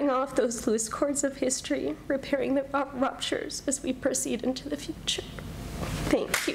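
A woman speaks calmly into a microphone.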